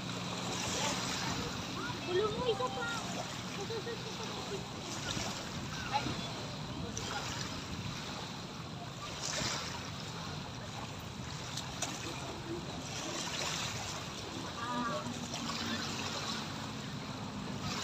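Small waves lap and splash against the shore.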